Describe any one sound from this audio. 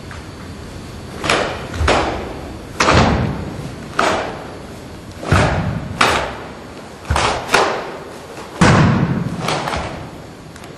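Bare feet thud and slide on a hard floor.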